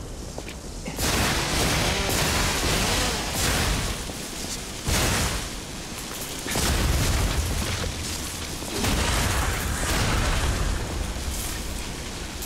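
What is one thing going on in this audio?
A chainsaw blade whirs and grinds loudly.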